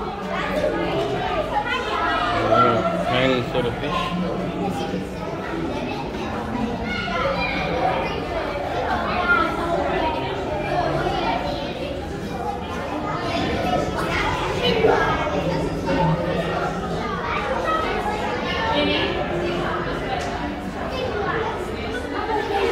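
A crowd of men, women and children chatter all around.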